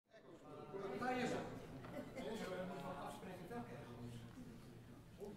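A small string ensemble plays together in a large hall.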